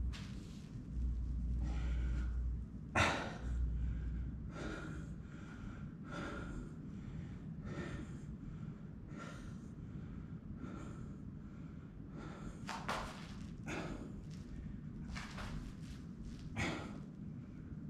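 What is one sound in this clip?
A man breathes heavily and steadily, close by.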